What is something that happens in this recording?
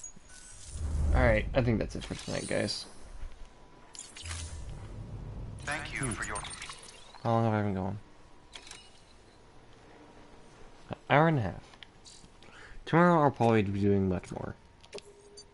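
Electronic menu tones sweep and chime.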